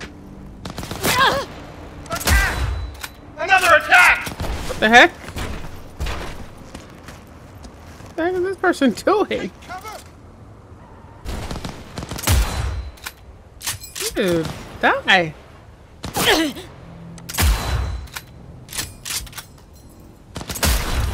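A rifle fires single loud shots, each with a short echo.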